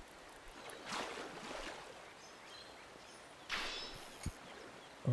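Water splashes as a fish breaks the surface.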